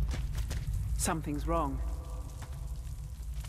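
A young man speaks quietly.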